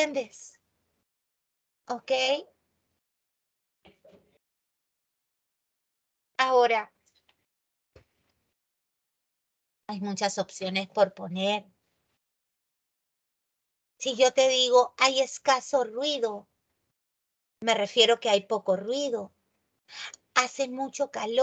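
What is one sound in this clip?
A woman talks in a calm, explaining tone, heard through an online call.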